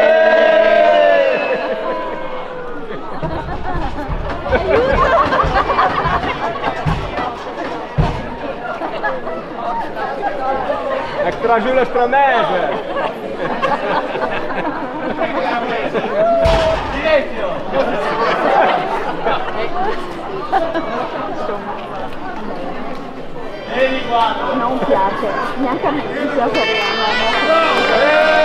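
A crowd of people chatters and laughs nearby.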